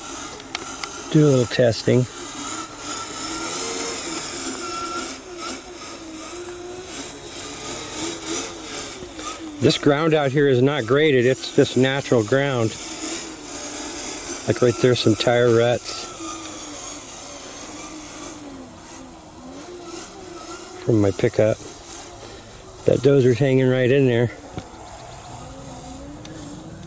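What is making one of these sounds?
Plastic wheels rustle over grass.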